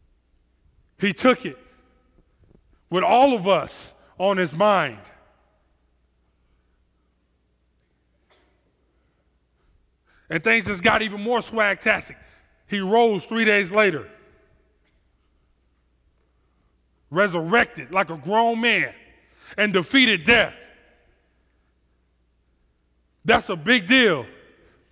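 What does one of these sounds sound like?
A man speaks with animation through a headset microphone, pausing often.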